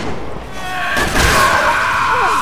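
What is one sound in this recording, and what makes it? A heavy blow lands in a scuffle.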